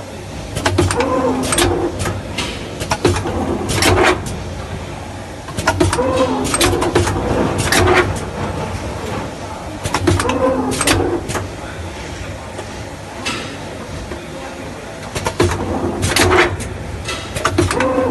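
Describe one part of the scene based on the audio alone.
A filling machine whirs and clanks in repeated cycles.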